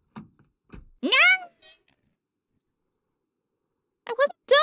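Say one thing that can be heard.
A young woman laughs and squeals close to a microphone.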